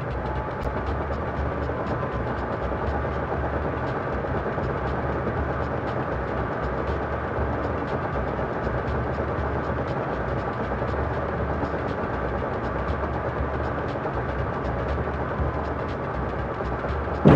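Bowling pins clatter in the distance.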